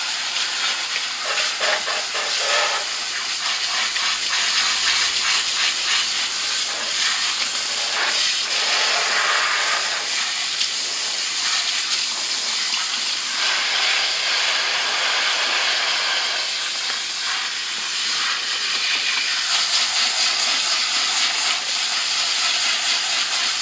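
Water sprays from a shower head and splashes into a basin.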